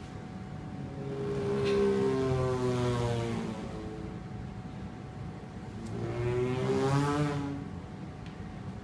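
A young man sings long, wavering notes.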